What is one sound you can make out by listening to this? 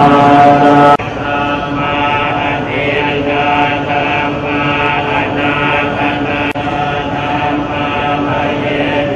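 Men chant together in low voices through a microphone.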